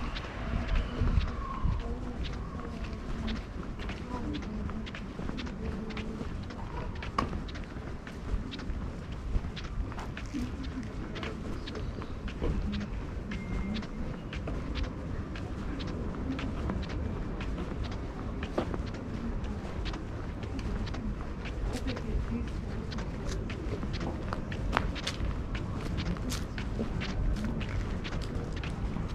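Footsteps tap on a paved path outdoors.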